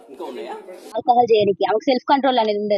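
A young woman speaks loudly and urgently into microphones outdoors.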